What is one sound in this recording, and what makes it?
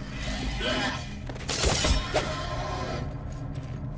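A sword slashes and strikes an enemy.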